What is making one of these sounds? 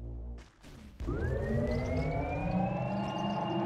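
A magic spell hums with a slowly rising tone.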